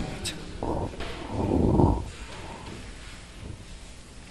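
A felt eraser rubs across a chalkboard.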